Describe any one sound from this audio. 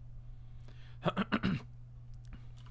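A man laughs briefly close to a microphone.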